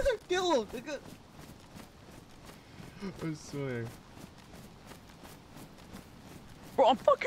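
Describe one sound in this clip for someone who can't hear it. Footsteps swish through tall grass at a steady pace.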